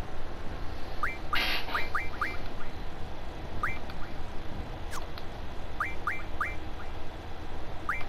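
Short rising electronic blips sound as a game menu cursor moves.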